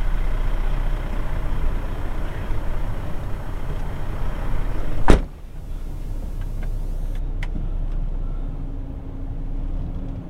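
A metal gate rattles as it slides open.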